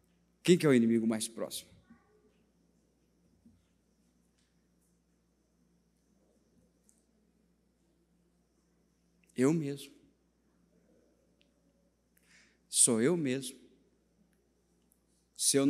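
A man speaks with animation into a microphone in short bursts, with long pauses.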